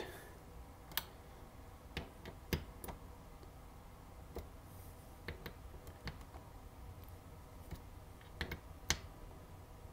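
A socket ratchet clicks as it turns a small screw.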